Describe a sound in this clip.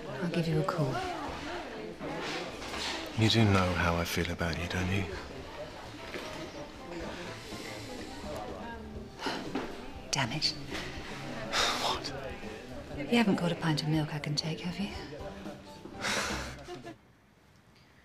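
A woman speaks quietly and closely.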